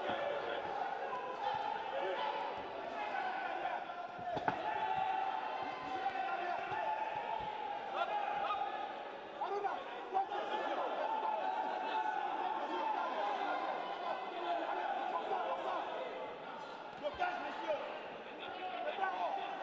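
Boxing gloves thud against a body in quick punches.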